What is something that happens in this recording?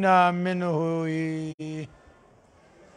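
An elderly man chants in a drawn-out, melodic voice through a microphone in an echoing hall.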